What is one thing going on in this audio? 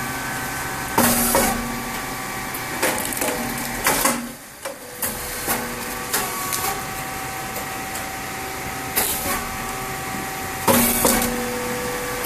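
A grain-cake popping machine bursts open with a sharp pop.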